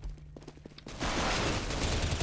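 Rapid gunshots crack loudly.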